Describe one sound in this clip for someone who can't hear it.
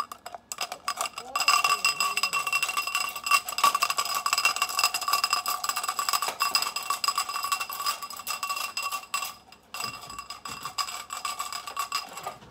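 Markers rattle in a cup.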